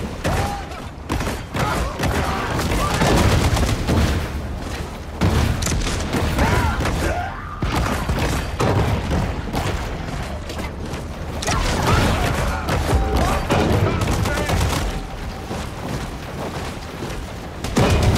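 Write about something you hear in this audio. Blows and impacts strike again and again.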